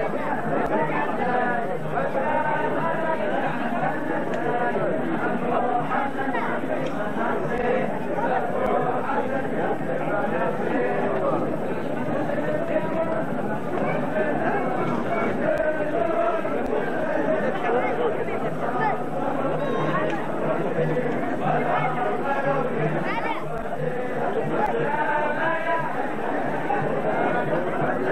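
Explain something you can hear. A large crowd of men sings together outdoors.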